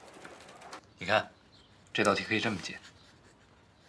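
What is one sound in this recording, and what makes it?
A young man speaks softly and warmly nearby.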